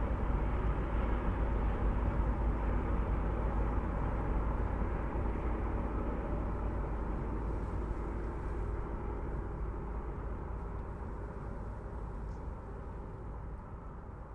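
A steam locomotive idles with a low, steady rumble and hiss that slowly fades.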